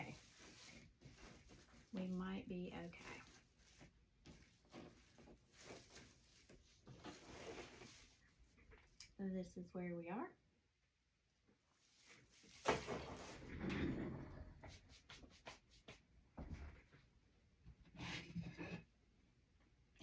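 Paper and ribbon rustle and crinkle.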